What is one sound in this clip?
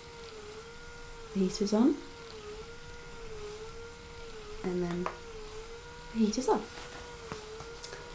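A massager hums steadily with a wavering tone.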